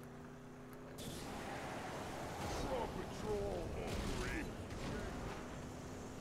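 Rockets whoosh and roar from the back of a car.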